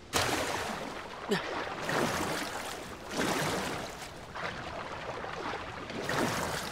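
Water splashes steadily as a swimmer strokes through it.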